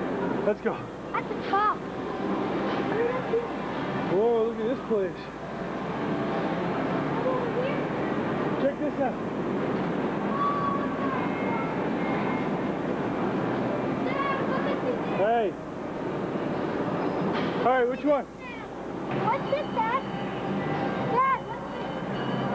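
Young children shout and squeal now and then, close by and far off.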